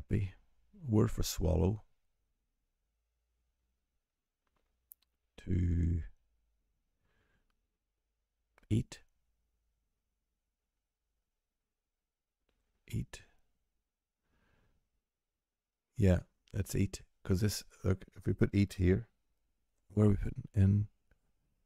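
A middle-aged man speaks calmly and thoughtfully into a close microphone, in short bursts with pauses.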